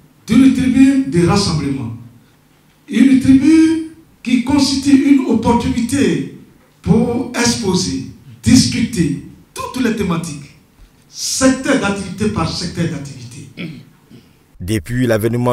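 A man speaks steadily into a microphone, in short phrases with pauses.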